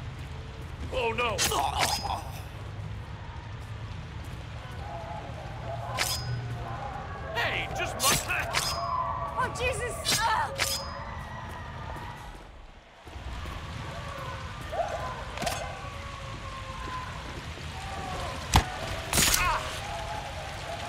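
A man is struck with heavy thuds during a scuffle.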